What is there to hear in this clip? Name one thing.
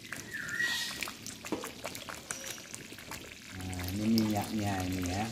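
A metal ladle clinks against a metal pot.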